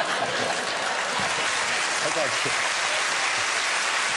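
An elderly man laughs.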